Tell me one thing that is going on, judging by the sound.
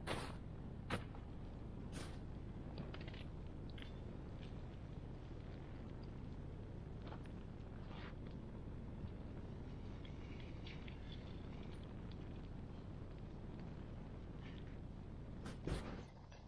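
A large campfire roars steadily.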